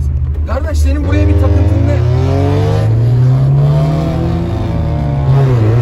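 A car engine revs up, rising in pitch.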